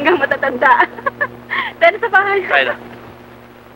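A young man talks with animation, heard through an old, hissy recording.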